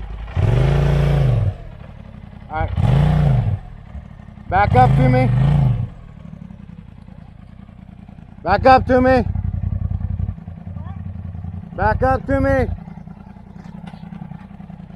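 An off-road buggy's engine idles with a low rumble.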